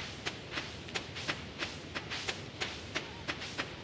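A fishing line whips out in a cast.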